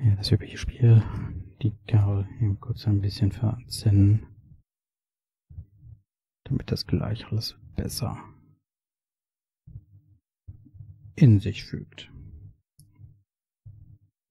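Small metal clips click as they are handled.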